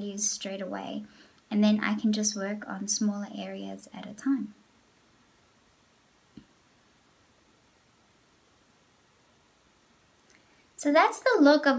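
A young woman speaks calmly and closely into a microphone, with pauses.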